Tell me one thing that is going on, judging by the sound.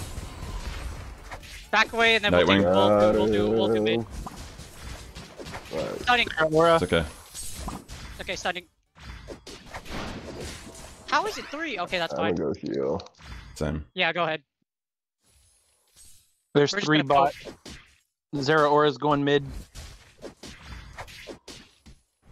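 Game attacks hit with short zaps and thuds.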